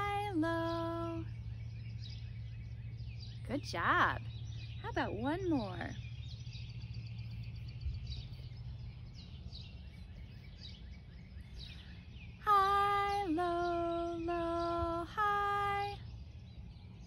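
A woman sings short held notes close by.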